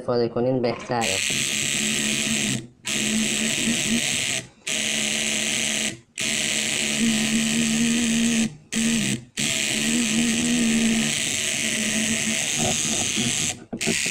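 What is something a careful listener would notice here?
A tattoo machine buzzes steadily, stopping briefly now and then.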